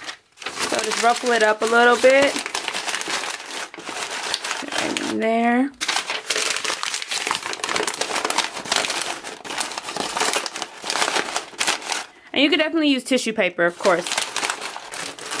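Tissue paper crinkles and rustles.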